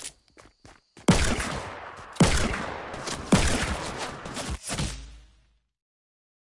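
A gun fires several loud single shots.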